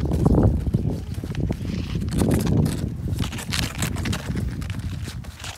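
A sled scrapes over snow as a child pulls it.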